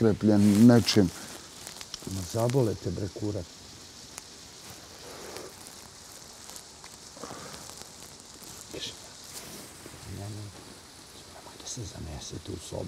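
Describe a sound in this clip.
A man talks quietly nearby.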